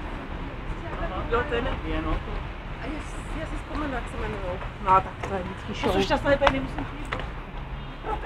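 A woman talks casually nearby.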